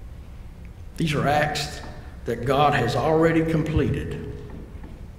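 An elderly man speaks calmly through a microphone in a reverberant hall.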